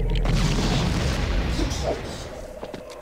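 A magical blast bursts with a loud crackle.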